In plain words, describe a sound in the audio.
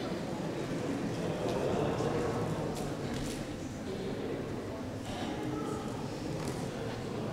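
A group of young women sing together in a large echoing hall.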